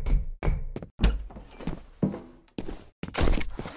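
A heavy door opens.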